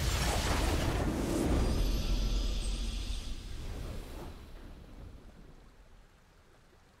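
A triumphant game fanfare plays loudly and fades away.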